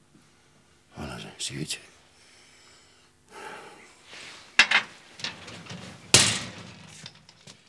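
An elderly man speaks quietly.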